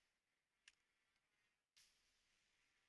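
A short interface click sounds.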